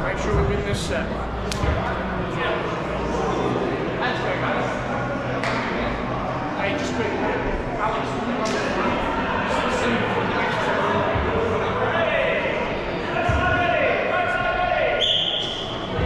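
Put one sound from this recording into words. Many voices of players call out and chatter in a large echoing hall.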